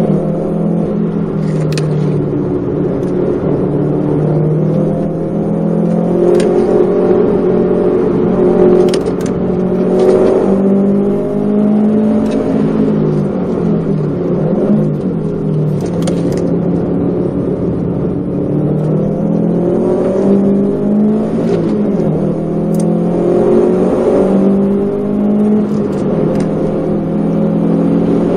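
A car engine drones loudly from inside the cabin, revving up and down through the gears.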